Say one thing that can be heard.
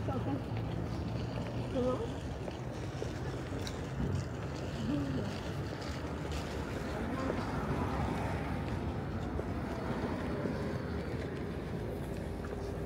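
City traffic hums steadily outdoors.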